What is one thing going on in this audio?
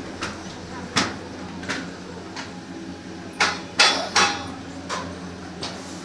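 A chairlift clanks and rattles at the station.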